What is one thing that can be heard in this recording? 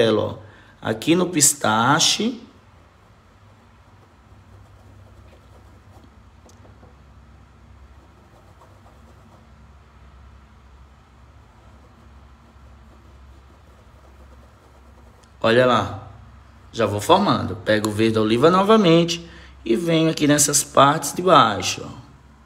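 A brush dabs and swishes softly on paper.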